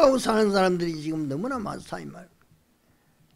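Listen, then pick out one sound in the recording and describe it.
An elderly man speaks calmly into a microphone, heard through a loudspeaker.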